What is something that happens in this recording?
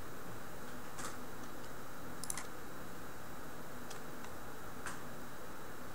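Soft electronic menu clicks sound now and then.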